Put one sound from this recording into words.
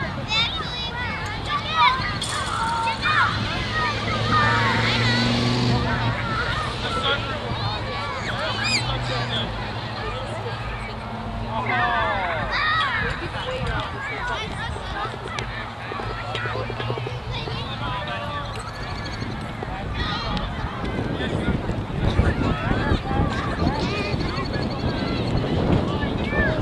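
Adults cheer and call out from the sideline.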